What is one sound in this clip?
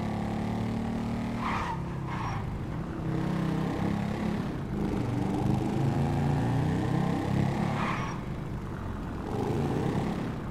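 A motorcycle engine revs and hums steadily, rising and falling in pitch.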